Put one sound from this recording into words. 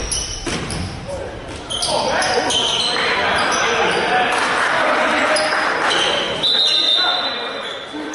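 Basketball players' shoes squeak on a hardwood floor in a large echoing gym.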